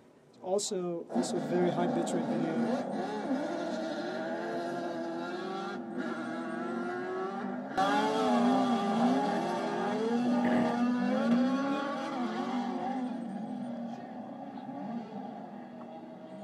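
Racing car engines roar and rev through a small loudspeaker.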